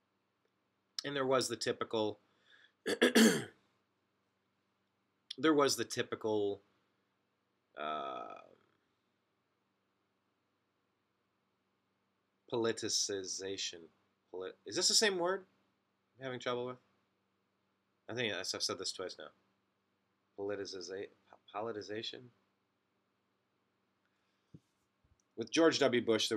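A man speaks with animation, close to a microphone, in short bursts with pauses.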